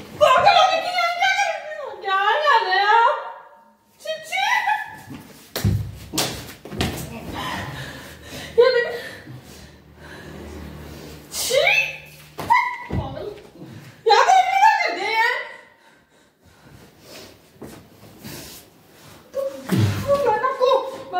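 A woman talks loudly and with animation nearby.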